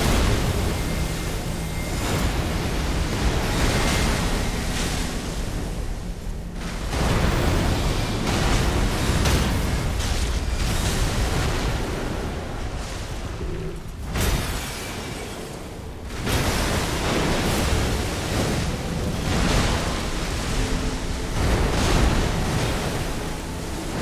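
Water splashes as a huge beast thrashes.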